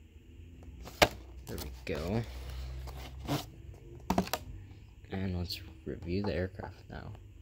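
Cardboard rustles and taps as a small box is handled.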